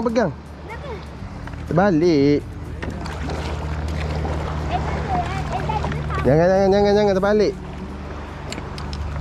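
A paddle dips and splashes in shallow water.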